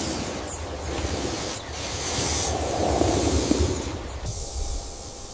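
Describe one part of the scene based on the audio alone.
A large snake slithers over dry grass with a soft rustle.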